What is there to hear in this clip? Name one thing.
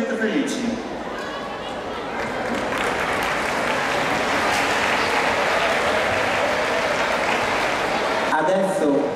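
A man speaks through a loudspeaker.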